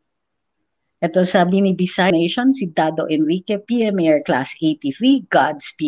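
A woman speaks into a microphone, clearly and with animation.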